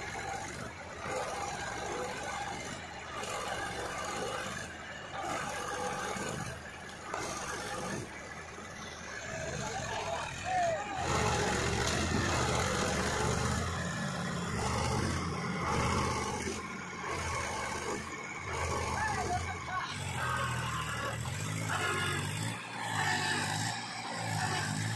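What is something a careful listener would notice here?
A tractor engine rumbles and strains, revving harder partway through.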